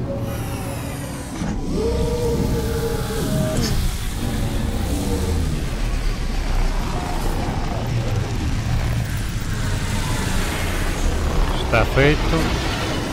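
A spaceship engine hums low and steadily.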